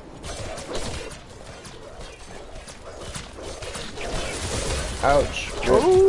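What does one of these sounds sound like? Game combat sounds clash and crackle.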